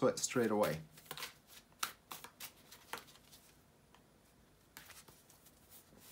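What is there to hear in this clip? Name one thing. Playing cards riffle and click as a deck is shuffled.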